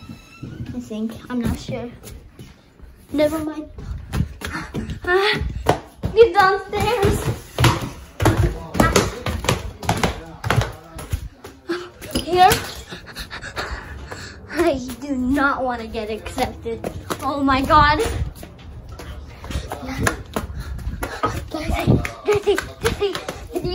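A child talks with animation close by.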